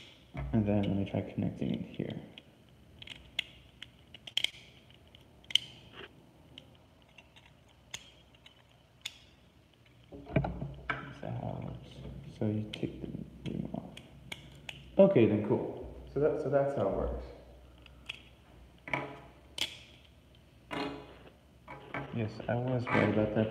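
Plastic parts click and snap together in someone's hands.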